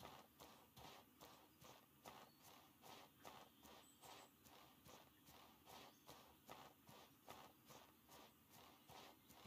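Footsteps swish steadily through tall grass.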